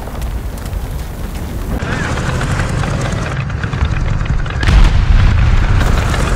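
A tank engine rumbles deeply.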